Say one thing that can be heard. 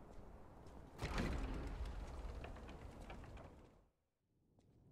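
A heavy door swings open with a rumble.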